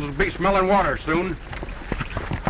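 A man speaks loudly with a drawn-out call.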